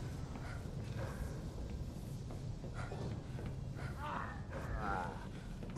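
Footsteps clang on metal stairs.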